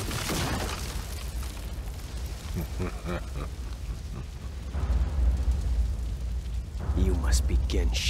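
A fire roars with a deep, steady rumble.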